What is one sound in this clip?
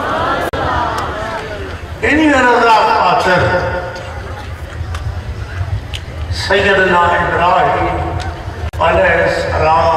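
An elderly man speaks with fervour into a microphone, heard through a loudspeaker outdoors.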